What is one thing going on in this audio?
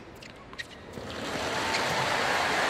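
A crowd breaks into applause.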